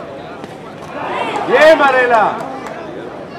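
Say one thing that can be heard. A crowd shouts and cheers loudly for a moment.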